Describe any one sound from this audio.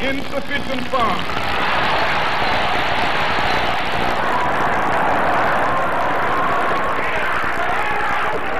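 A crowd shouts and clamours in a scuffle.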